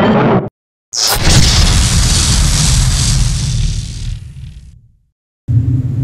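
A loud rushing whoosh swells and fades away.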